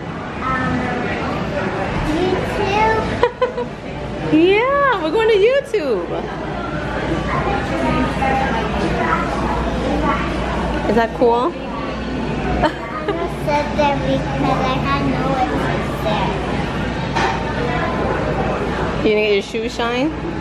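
A young girl talks excitedly close by.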